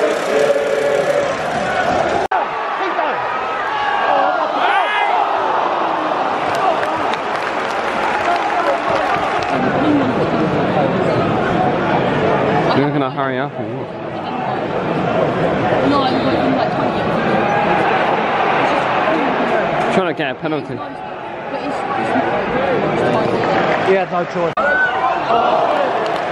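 Nearby spectators shout and cheer.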